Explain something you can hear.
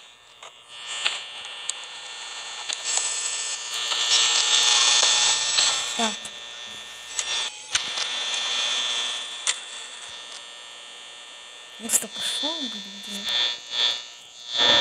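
Electric static hisses and crackles.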